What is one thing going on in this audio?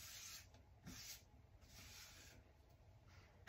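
Thin wooden pieces knock and rustle as they are handled.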